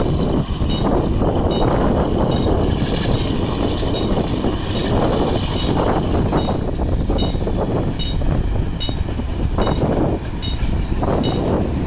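A diesel train rumbles steadily as it approaches.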